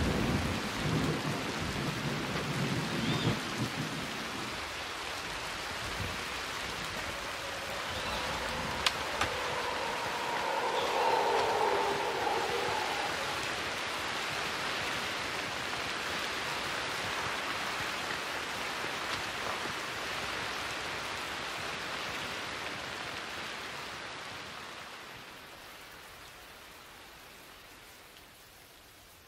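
Heavy rain hisses steadily, then slowly fades away.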